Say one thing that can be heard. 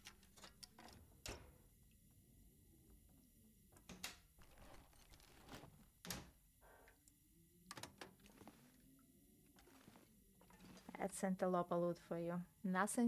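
Footsteps thud on creaky wooden floorboards.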